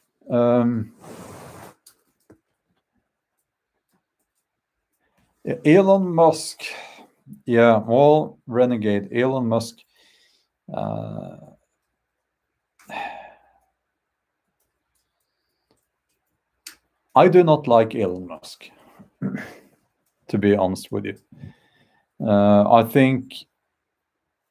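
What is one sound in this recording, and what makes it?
A man speaks calmly and slowly, close by, with long pauses.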